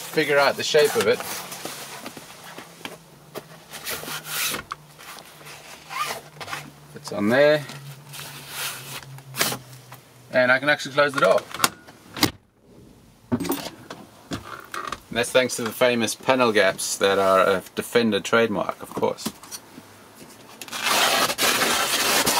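A fabric cover rustles and flaps as it is fitted over a door frame.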